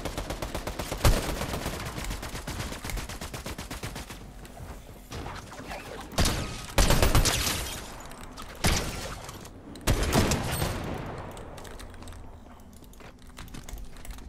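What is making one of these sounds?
Quick clicking and thudding game effects sound as walls are built.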